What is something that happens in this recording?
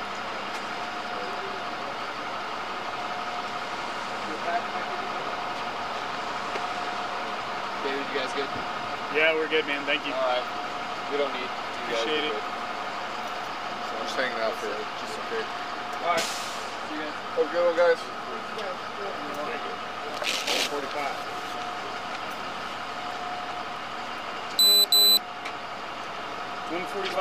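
A steady engine idles close by.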